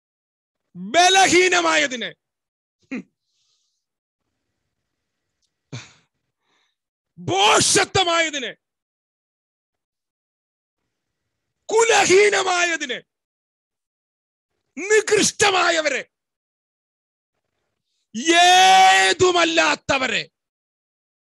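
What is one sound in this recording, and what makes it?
A man speaks loudly and with animation into a microphone, in short bursts with pauses.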